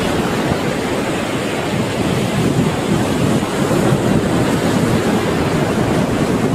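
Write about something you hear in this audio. Ocean waves roll and wash steadily outdoors.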